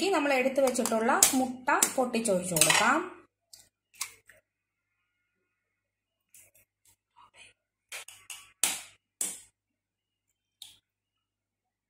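A knife taps sharply against an eggshell, cracking it.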